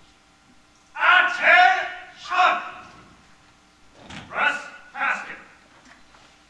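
A man shouts drill commands loudly in an echoing hall.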